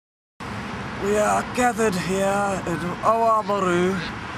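A young man speaks calmly and close by, outdoors.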